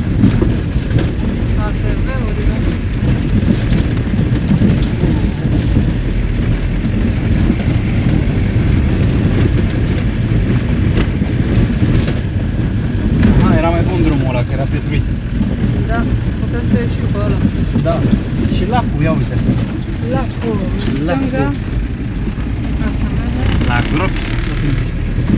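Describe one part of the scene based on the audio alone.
Tyres roll and bump over a rough dirt track.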